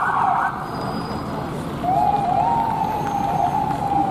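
Buses rumble past on a wet street.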